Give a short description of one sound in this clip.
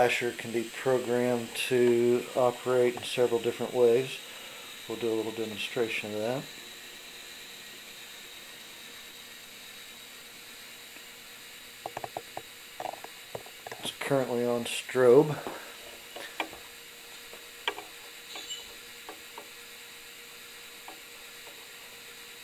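A model train rolls along its track with a soft whirr.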